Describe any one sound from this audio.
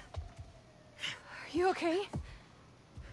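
A young woman asks a quiet question.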